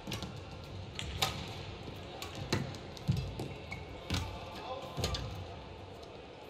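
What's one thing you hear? A shuttlecock is struck sharply back and forth with rackets.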